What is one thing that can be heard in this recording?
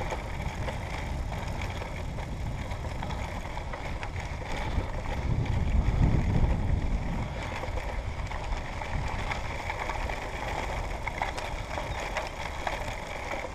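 Tyres crunch and rumble steadily on a gravel track.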